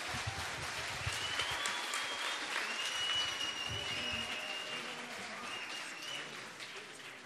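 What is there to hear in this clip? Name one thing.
Audience members whistle shrilly.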